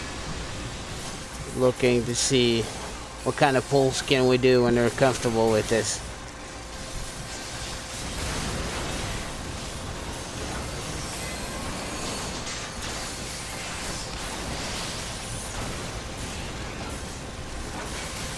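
Game battle effects crash and whoosh as weapons strike and spells burst.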